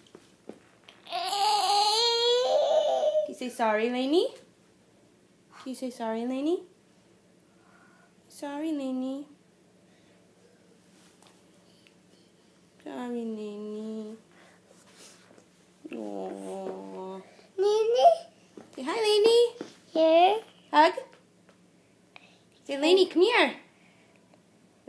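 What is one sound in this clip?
A toddler girl squeals and babbles close by.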